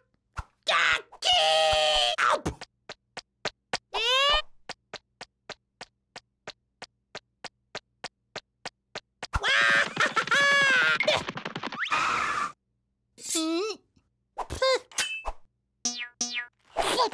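A small cartoon chick squawks and chirps in a high, squeaky voice.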